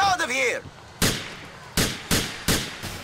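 Gunshots ring out in quick succession, echoing along a street.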